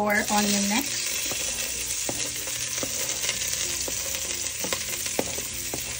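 A spatula scrapes chopped onion off a plastic board into a pot.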